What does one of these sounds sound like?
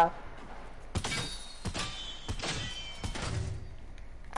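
Rapid gunshots crack.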